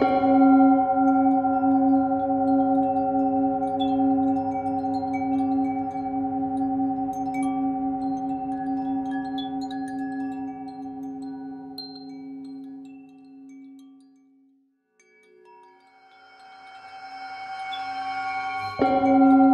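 A singing bowl hums steadily as a mallet rubs its rim, fading away and then swelling again.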